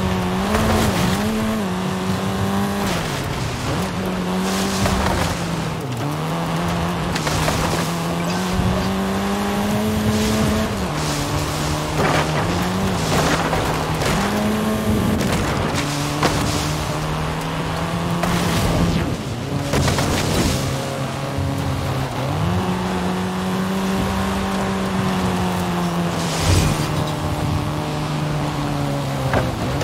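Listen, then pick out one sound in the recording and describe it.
A car engine roars steadily, its pitch rising and falling as the car speeds up and slows.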